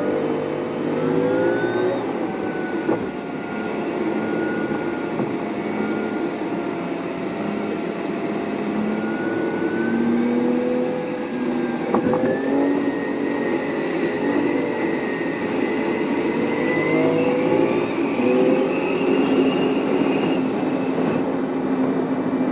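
A bus engine hums and whines steadily from inside the cabin, rising and falling in pitch.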